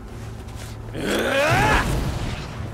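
A fighter's swooping energy attack sweeps up in pitch with a whoosh.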